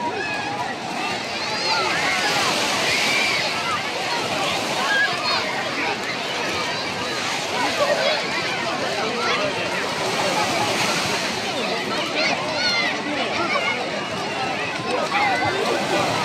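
Small waves lap and splash at the shore.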